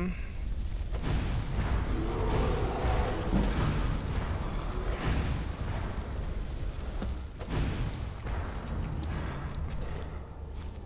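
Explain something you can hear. Fire spells whoosh and burst.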